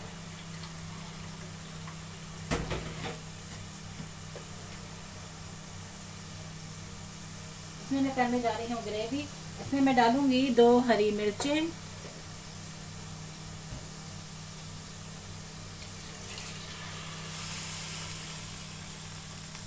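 A gas burner hums steadily.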